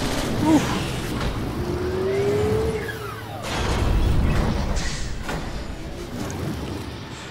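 A vehicle engine roars.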